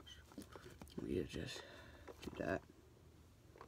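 A young man speaks quietly nearby.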